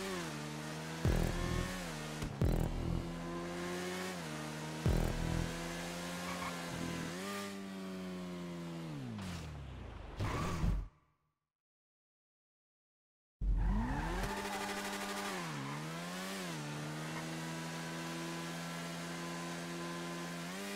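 A motorcycle engine revs and whines, rising and falling in pitch as it speeds up and slows down.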